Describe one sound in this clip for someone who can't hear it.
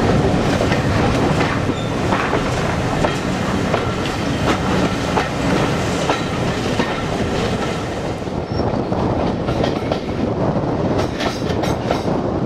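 Wind rushes past a moving train.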